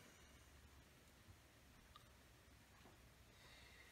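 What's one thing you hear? A glass carafe is set down softly on a cloth surface.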